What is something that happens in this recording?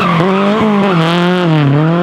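Tyres screech on pavement as a car slides.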